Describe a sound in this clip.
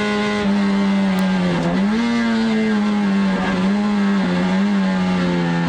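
A race car engine roars loudly from inside the cabin, its pitch rising and falling.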